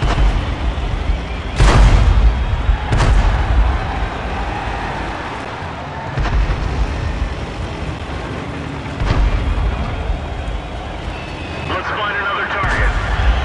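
A tank engine rumbles and roars steadily.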